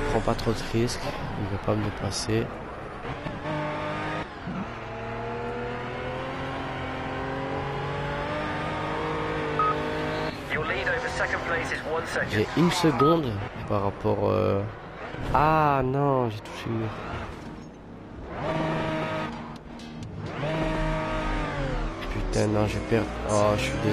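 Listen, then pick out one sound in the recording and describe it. A race car engine roars, rising and falling in pitch as the car shifts gears.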